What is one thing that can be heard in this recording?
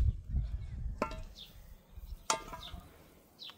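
Water pours from a kettle into a pot.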